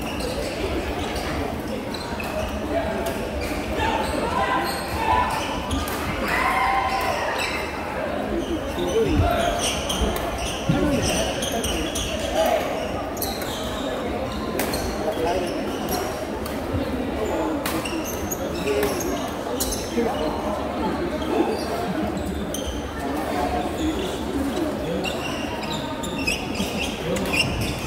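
Shuttlecocks are struck with rackets in sharp pops, with an echo in a large hall.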